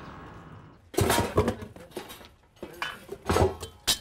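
A wheelbarrow rattles over rough ground.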